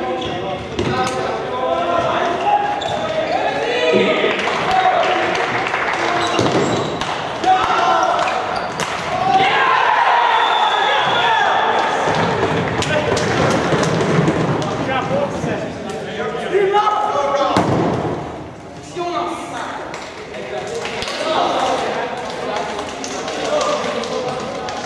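Sticks click and clack against a ball.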